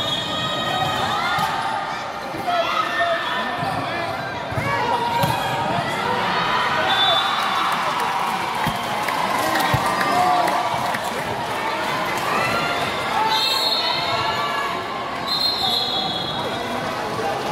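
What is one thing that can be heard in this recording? Young women players shout to each other on court.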